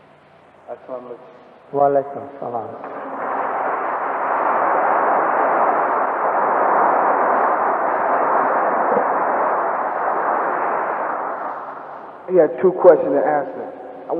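A man reads aloud.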